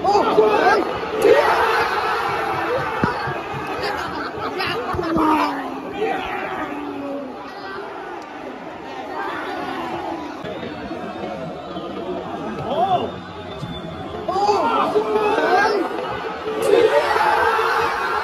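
A large stadium crowd roars and cheers loudly outdoors.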